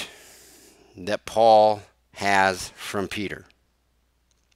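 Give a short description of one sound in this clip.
A man speaks with animation through a headset microphone, as if on an online call.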